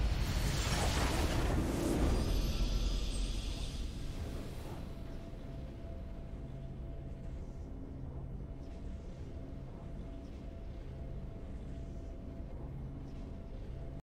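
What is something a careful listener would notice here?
Triumphant music plays softly.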